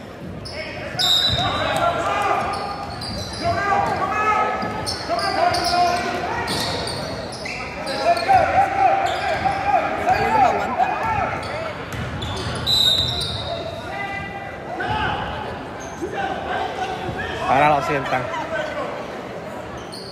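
A crowd in the stands cheers and shouts, echoing in a large hall.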